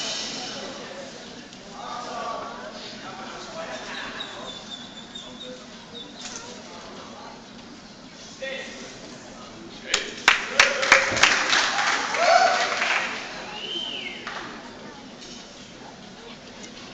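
Children and adults chatter in the background of a large echoing hall.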